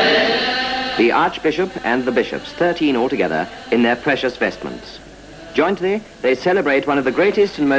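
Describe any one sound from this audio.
A man chants loudly in a large echoing hall.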